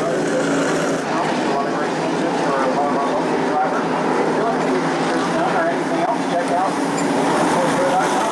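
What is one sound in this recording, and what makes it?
Race car engines rumble and idle nearby.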